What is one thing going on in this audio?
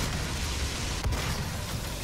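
Flames roar from a flamethrower.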